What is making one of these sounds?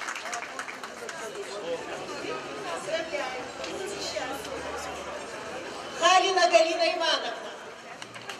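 A woman speaks into a microphone over loudspeakers.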